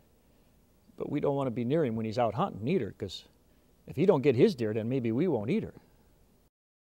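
A middle-aged man speaks expressively, close to a microphone.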